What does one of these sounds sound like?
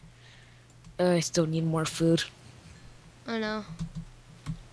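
A young man talks briefly into a microphone, with animation.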